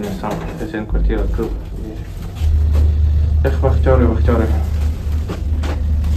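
A lift hums steadily as it moves.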